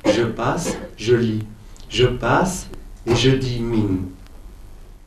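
A man reads aloud into a microphone, with a calm, steady voice.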